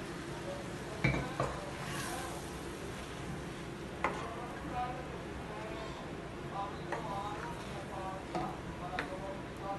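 A wooden spoon stirs and scrapes against a metal pan.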